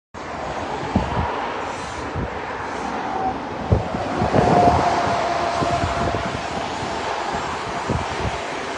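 Wind gusts outdoors, buffeting the microphone.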